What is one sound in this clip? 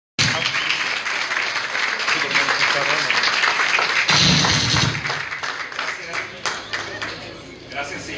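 A group of people applaud outdoors.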